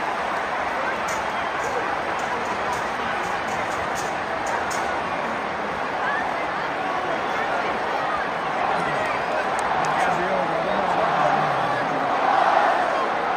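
Whistles and shouts rise from a stadium crowd.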